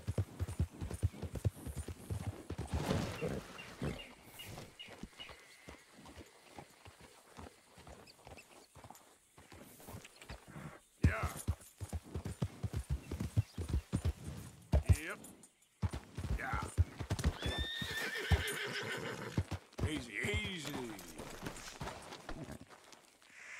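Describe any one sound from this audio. A horse walks on a dirt and rocky trail, hooves thudding.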